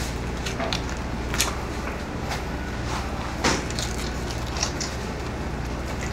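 A knife slices through raw meat with soft wet sounds.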